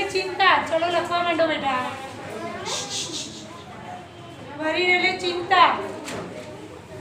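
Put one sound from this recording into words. A woman speaks loudly and clearly, as if addressing a room.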